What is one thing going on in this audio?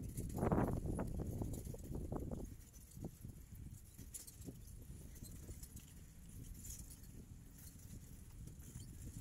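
Wind buffets outdoors, strongest at the start.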